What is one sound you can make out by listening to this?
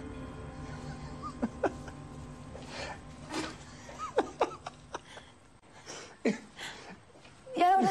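A man laughs softly close by.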